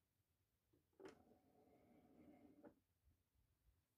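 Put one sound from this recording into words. A toy chest lid swings shut with a soft thud.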